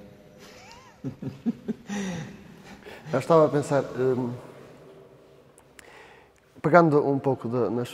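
A man speaks calmly into a microphone in a large, echoing room.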